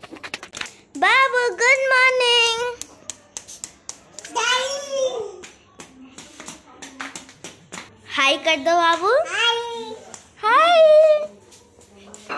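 A toddler babbles and squeals close by.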